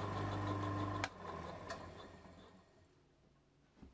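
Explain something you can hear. A milling machine's spindle whirs and winds down.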